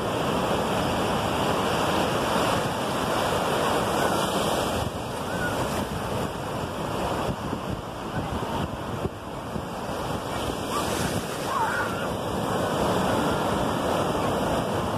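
Waves break and wash up onto the shore nearby.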